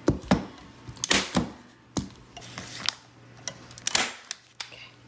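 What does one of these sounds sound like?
A staple gun snaps sharply several times.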